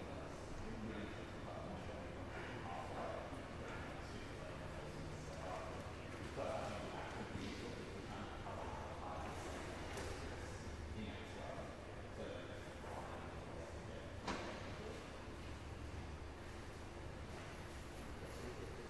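Bodies scuffle and thump on a padded mat in a large echoing hall.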